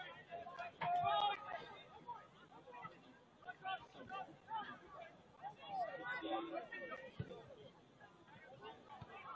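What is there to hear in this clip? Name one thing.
A crowd of adults and children talks and calls out nearby outdoors.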